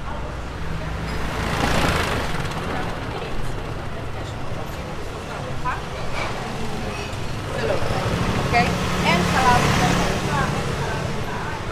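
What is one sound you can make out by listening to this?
A motor scooter putters past nearby.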